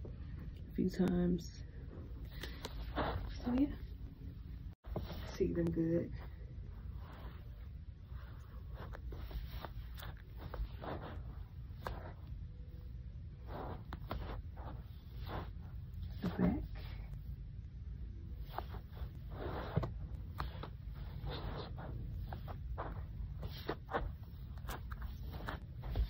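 Rubber slides shuffle and tap softly on carpet.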